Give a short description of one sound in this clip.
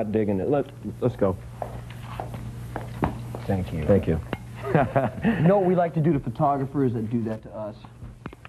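A woman speaks playfully close by.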